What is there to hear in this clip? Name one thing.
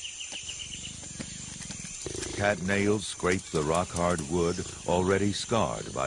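A big cat snarls and growls.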